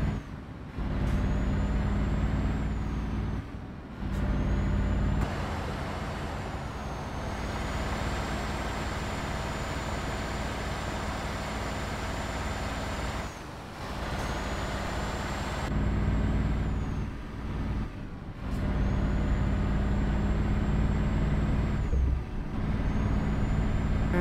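A truck engine hums steadily with a deep drone.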